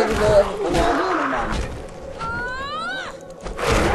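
Zombies growl and moan close by.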